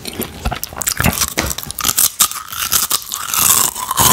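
A man crunches chips close up.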